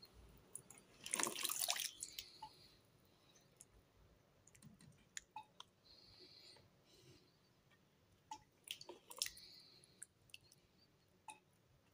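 A hand splashes and stirs water in a bucket.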